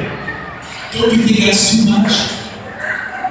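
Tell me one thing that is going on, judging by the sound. A man speaks loudly through a loudspeaker in a large echoing hall.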